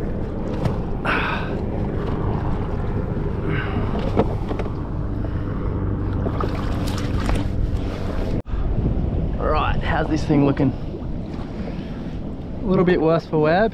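Small waves lap against a plastic boat hull.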